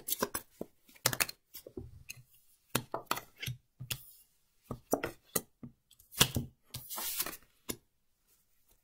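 Playing cards are laid down on a table.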